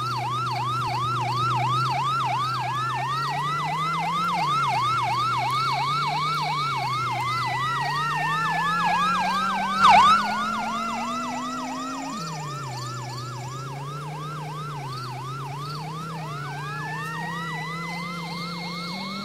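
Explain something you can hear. A police siren wails rapidly and steadily.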